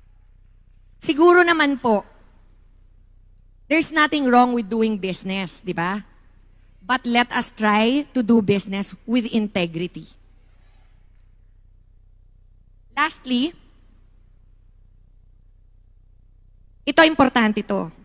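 A woman speaks calmly into a microphone, with pauses between phrases.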